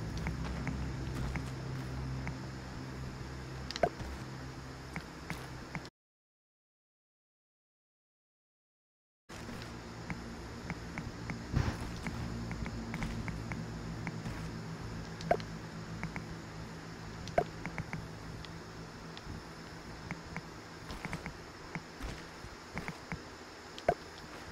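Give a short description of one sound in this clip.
Short knocks and clicks sound as building pieces snap into place.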